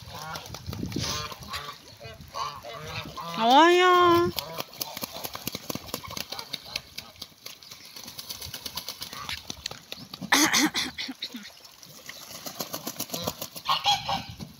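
Water splashes as birds bathe in a puddle.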